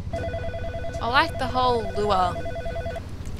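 A young woman speaks briefly and with animation into a close microphone.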